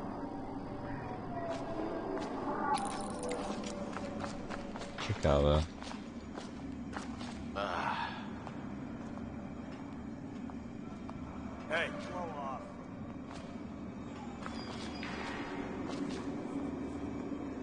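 Footsteps tread on a hard stone floor.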